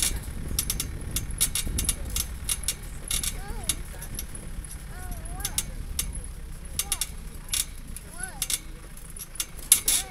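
A vehicle body rattles and knocks over bumps.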